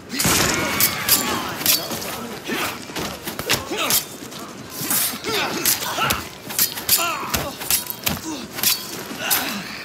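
Men grunt and cry out in pain.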